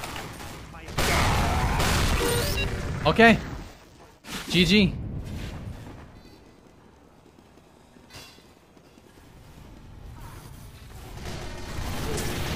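Gunshots fire rapidly in bursts.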